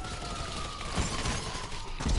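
A rifle fires a sharp gunshot.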